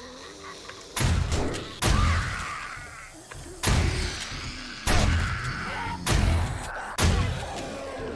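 A shotgun fires several loud blasts.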